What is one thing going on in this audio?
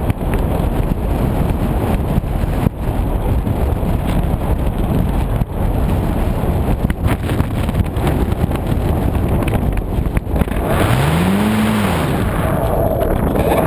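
Wind rushes loudly past a small model plane in flight.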